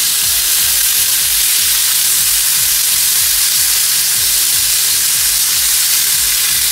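Fish sizzles loudly in hot oil.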